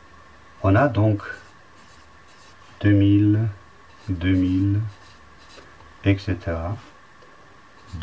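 A felt pen squeaks softly across paper.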